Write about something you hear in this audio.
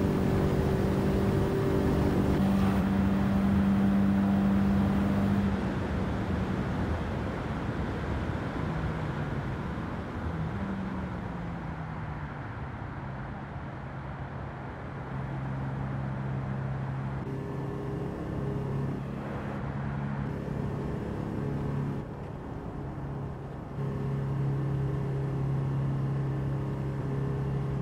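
Tyres and wind rush loudly past a speeding car.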